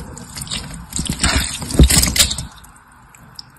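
Small glass pieces clink and crunch under rubbing fingers, close up.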